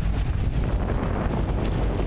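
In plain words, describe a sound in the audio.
Water sprays and churns in a boat's wake.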